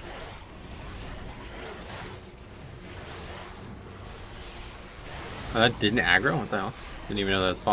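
Magic spell effects whoosh and crackle.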